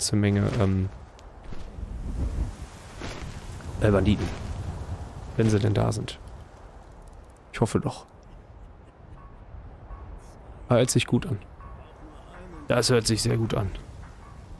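A man speaks into a close microphone in short bursts.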